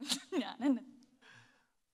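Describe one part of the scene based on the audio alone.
A young woman laughs into a microphone.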